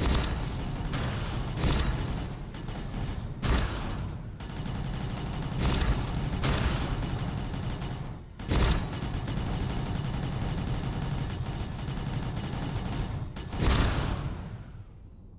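Laser weapons fire in rapid, dense bursts.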